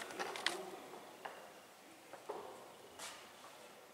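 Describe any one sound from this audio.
A woman speaks quietly close by in an echoing room.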